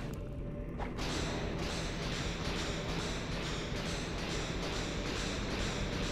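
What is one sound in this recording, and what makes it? Water rushes and splashes steadily.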